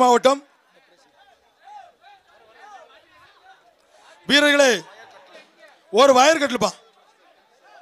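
Young men shout loudly in short bursts nearby.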